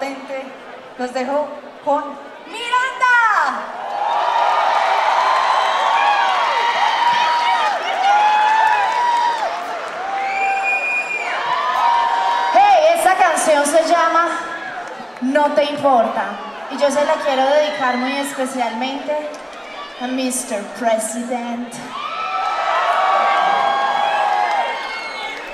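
A young woman sings loudly through a microphone.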